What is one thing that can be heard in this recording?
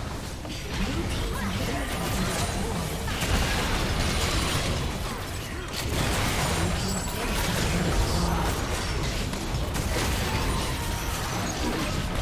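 Spell blasts, clashing weapons and explosions crackle and boom in a fast video game battle.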